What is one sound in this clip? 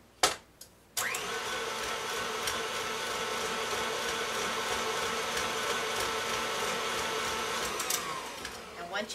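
A stand mixer whirs steadily, then winds down.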